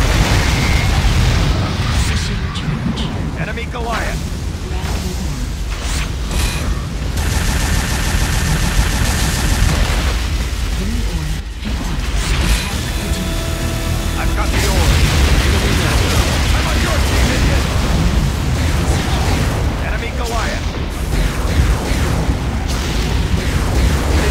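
Explosions boom with a deep rumble.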